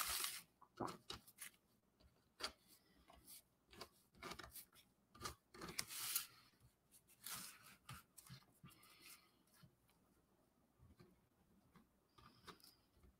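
A marker squeaks and scratches across cardboard.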